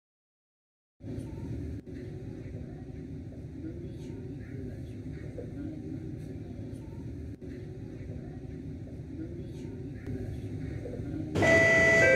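A train's motors hum steadily while idling.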